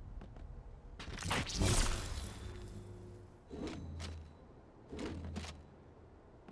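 A sci-fi weapon is picked up with a short metallic clank.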